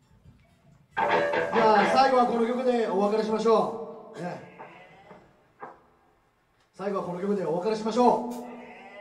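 A rock band plays loudly with electric guitars, bass and drums.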